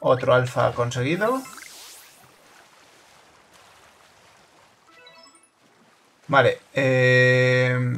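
Water splashes as something moves quickly across a lake.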